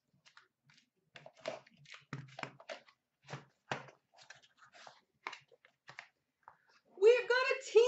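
Cardboard scrapes and rustles as a small box is opened by hand.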